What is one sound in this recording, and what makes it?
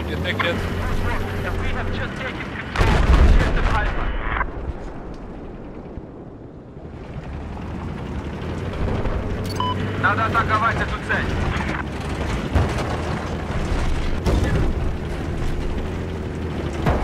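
A heavy tank engine rumbles low and steadily.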